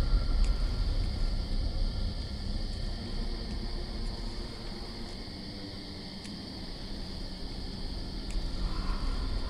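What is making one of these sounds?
Gems click softly as they slide into new places.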